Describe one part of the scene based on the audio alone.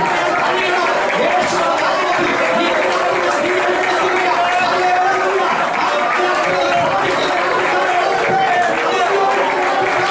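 A man preaches loudly and passionately through a microphone.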